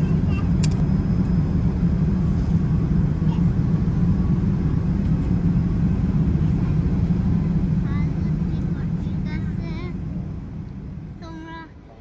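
A steady low drone of aircraft engines fills an airplane cabin.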